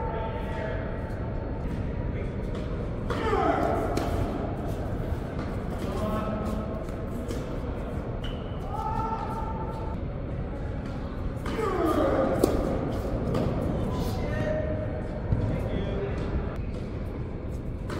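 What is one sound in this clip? Tennis balls are struck with a sharp pop by rackets, echoing in a large hall.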